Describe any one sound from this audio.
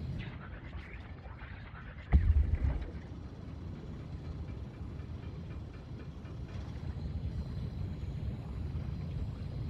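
A small submarine's motor hums low and steadily underwater.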